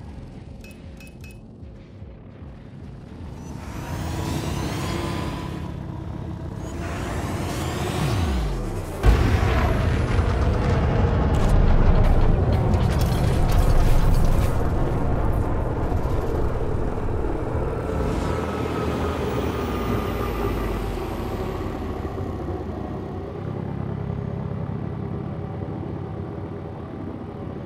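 A spacecraft engine hums and roars, swelling and falling in pitch.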